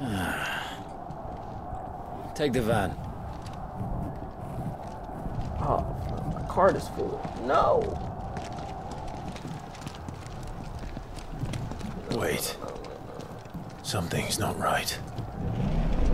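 Men talk calmly in low voices.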